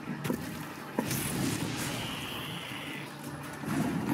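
A short magical whoosh rings out.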